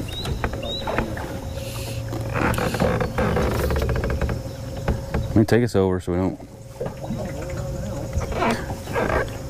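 Water laps softly against a boat.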